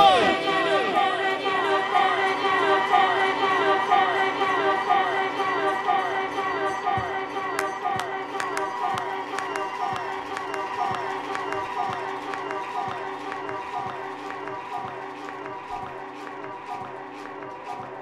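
An electric guitar plays a repeating ringing pattern that slowly fades.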